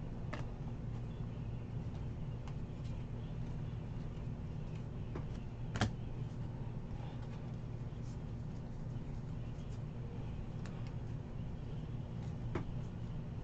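Trading cards slide and flick against each other as they are shuffled by hand.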